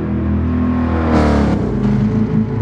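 A car engine roars loudly as it passes close by.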